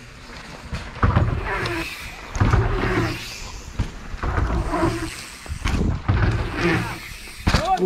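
Bicycle tyres thump and roll across a wooden ramp.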